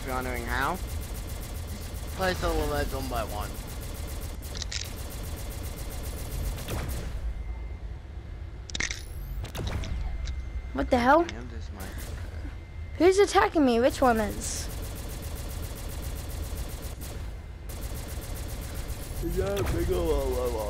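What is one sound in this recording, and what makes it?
A gun fires blasts in quick bursts.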